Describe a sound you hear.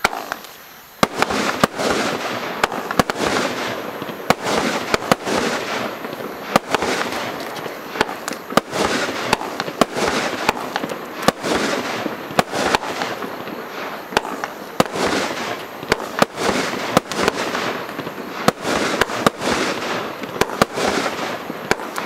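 Fireworks crackle and hiss as they burst apart.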